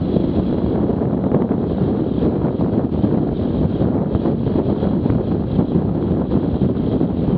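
Wind buffets loudly against a moving rider.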